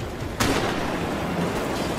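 A rocket launcher fires with a sharp blast.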